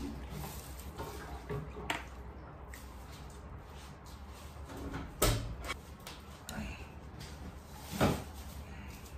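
A large plastic water jug thumps and knocks as a man handles it.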